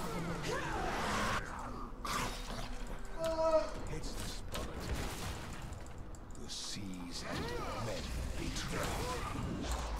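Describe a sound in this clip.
Video game weapons clash and strike.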